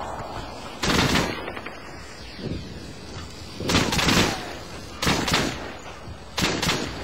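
Bursts of rapid gunfire ring out nearby.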